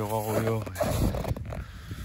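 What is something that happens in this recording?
Boots crunch on snow.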